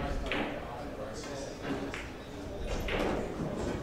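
A cue stick strikes a ball with a sharp click.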